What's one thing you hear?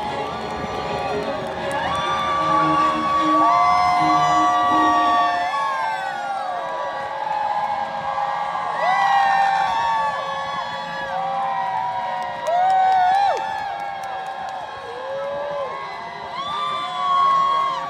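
A crowd cheers and whistles.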